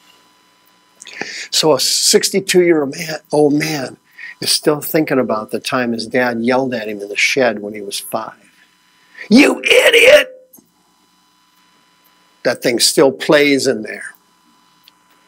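A man speaks with animation through a microphone, in bursts with pauses.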